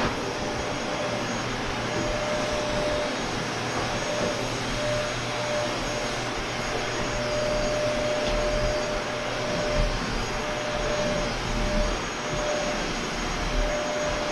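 A handheld vacuum cleaner hums steadily.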